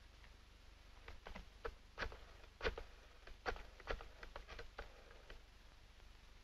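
A rotary telephone dial clicks and whirs.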